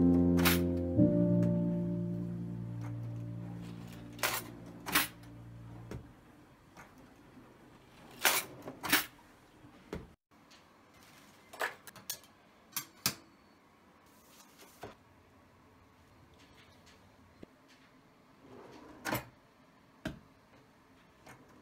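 A wooden drawer slides open and shut with a thud.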